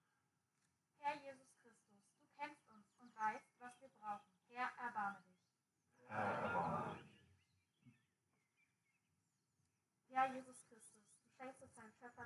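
A man speaks calmly through a loudspeaker outdoors, with pauses.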